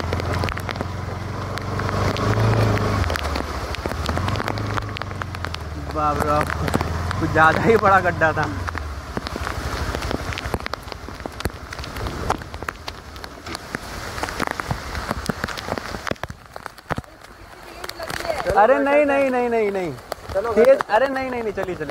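Rain patters steadily on the ground and on a motorcycle.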